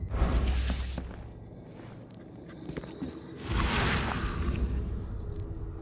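Sparks crackle and hiss in a swirling burst of fire.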